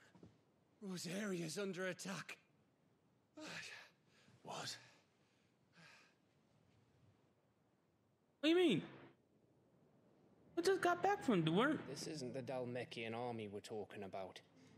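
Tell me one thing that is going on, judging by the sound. A young man speaks urgently and with tension.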